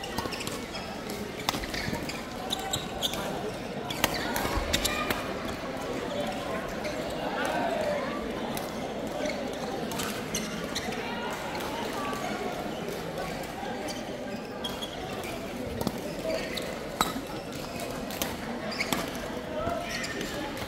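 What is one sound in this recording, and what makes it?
Badminton rackets smack a shuttlecock back and forth.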